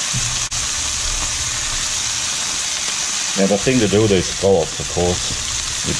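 A spatula scrapes against a frying pan.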